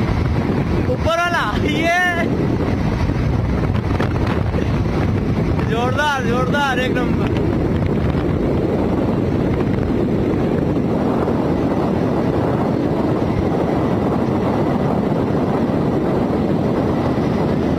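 A motorcycle engine hums steadily while riding along.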